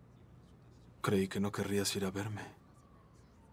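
A young man speaks hesitantly nearby.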